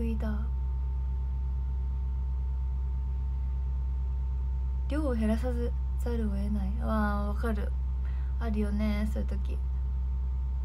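A young woman speaks softly and calmly, close to a microphone.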